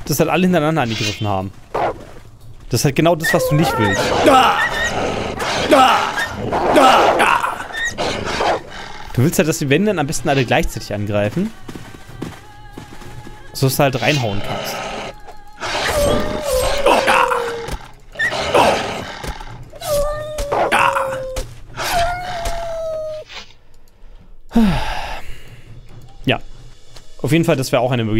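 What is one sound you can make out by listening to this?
Hyenas snarl and growl.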